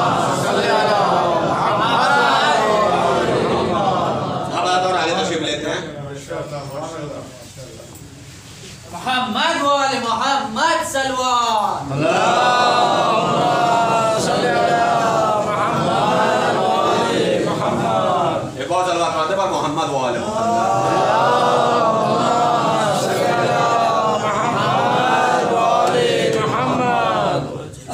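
A man speaks with feeling into a microphone, heard through a loudspeaker in an echoing room.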